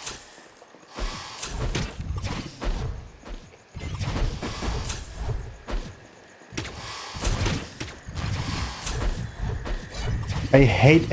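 Deep booming impacts thud repeatedly.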